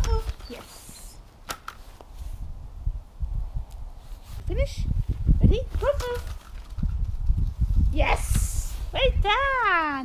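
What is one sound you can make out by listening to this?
A dog runs across crunchy frosty grass.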